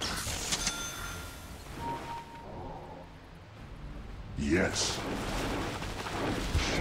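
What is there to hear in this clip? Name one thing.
Fantasy battle sound effects of magic spells whoosh and crackle.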